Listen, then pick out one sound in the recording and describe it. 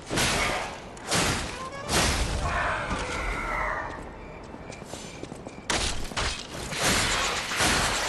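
Weapons clash and strike in a fight, with sharp metallic hits.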